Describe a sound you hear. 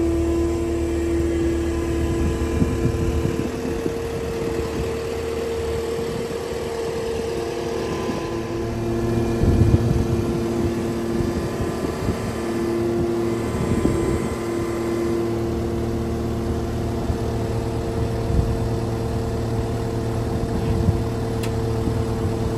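A diesel engine idles steadily nearby.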